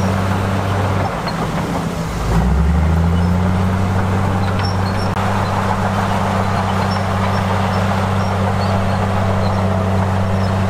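Bulldozer blades scrape and push loose dirt.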